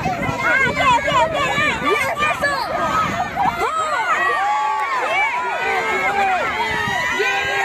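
Many young children shout and squeal excitedly outdoors.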